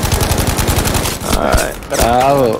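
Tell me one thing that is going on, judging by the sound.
Rapid gunfire crackles close by.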